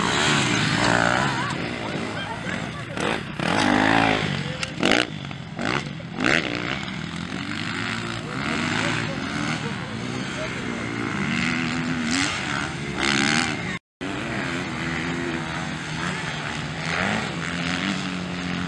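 Dirt bike engines rev and whine loudly outdoors.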